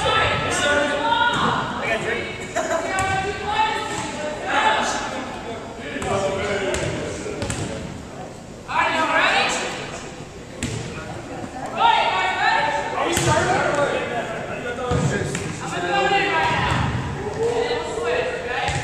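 Young men talk and call out across a large echoing gym.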